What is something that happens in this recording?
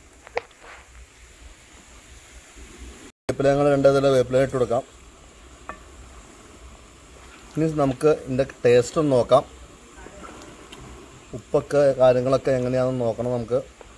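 A wooden spatula stirs thick curry in a metal pot.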